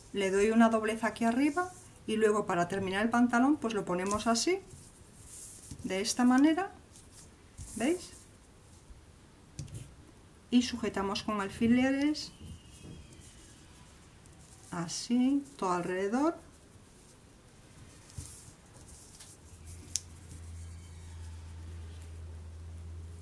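Soft fabric rustles as it is folded and handled.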